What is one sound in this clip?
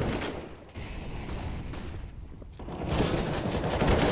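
Flames from an incendiary grenade roar and crackle in a video game.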